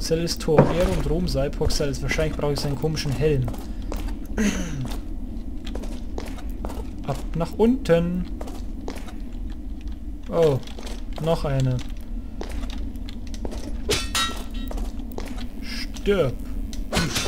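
Footsteps tap on a stone floor in an echoing passage.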